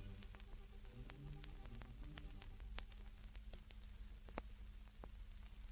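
An old shellac record crackles and pops as it spins.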